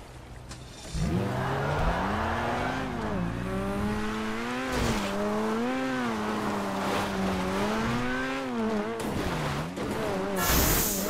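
A sports car engine revs and roars as the car speeds along.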